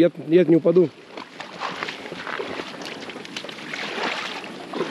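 Shallow water splashes underfoot as a child wades.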